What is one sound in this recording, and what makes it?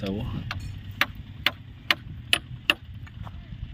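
Bamboo poles knock and tap sharply close by.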